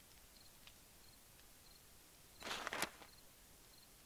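A soft menu click sounds.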